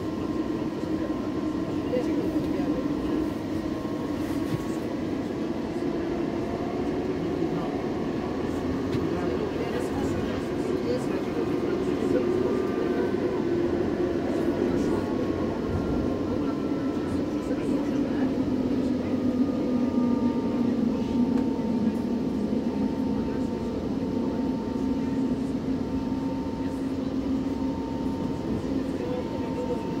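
A subway train rumbles and roars loudly through a tunnel.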